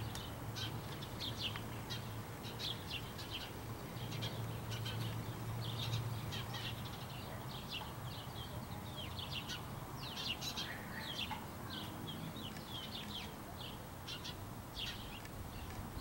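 A crow pecks and splashes lightly at water in a birdbath.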